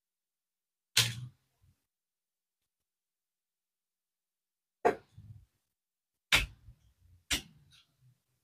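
A screwdriver clicks against metal screws.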